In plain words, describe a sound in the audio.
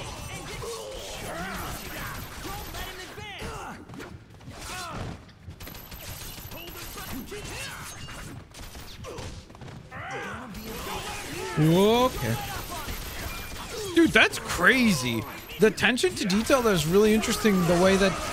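Blades slash and swish through the air.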